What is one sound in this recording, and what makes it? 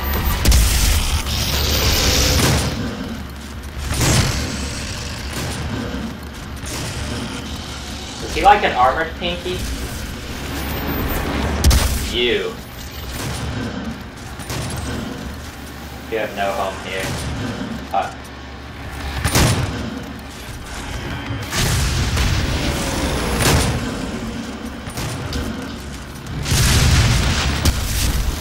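Shotgun blasts boom loudly, one after another.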